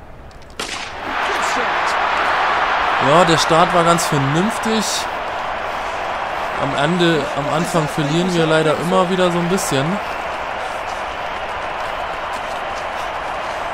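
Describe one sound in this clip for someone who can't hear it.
A large crowd cheers and roars steadily in a big open stadium.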